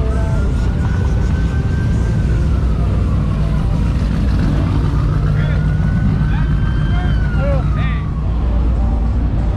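A police siren wails slowly up and down nearby.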